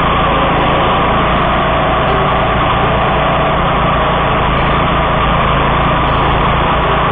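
A mower engine roars loudly and steadily close by.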